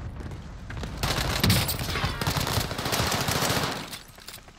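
A submachine gun fires rapid bursts in a video game.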